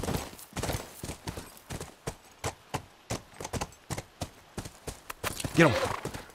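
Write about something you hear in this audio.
A horse's hooves clop at a steady trot.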